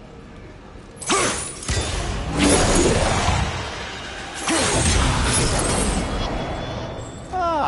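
A burst of magical energy whooshes and roars.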